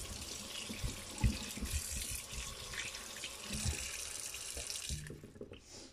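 Tap water runs and splashes into a metal sink.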